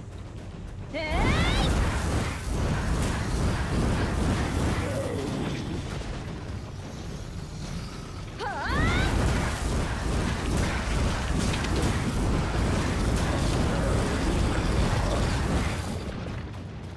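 Heavy blows and crashing impacts of a fierce fight ring out.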